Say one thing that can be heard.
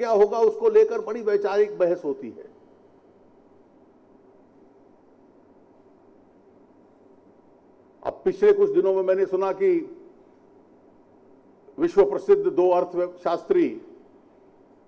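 A middle-aged man speaks forcefully into a microphone in short bursts, with pauses between.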